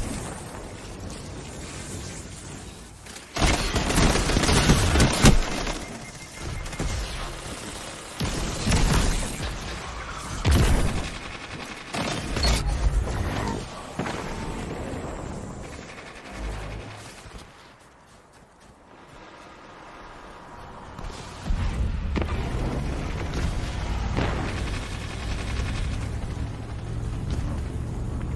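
Bursts of automatic gunfire rattle in a video game.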